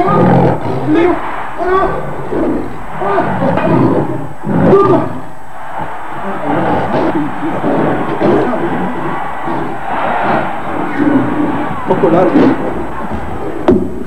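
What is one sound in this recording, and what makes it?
A woman speaks forcefully and close by.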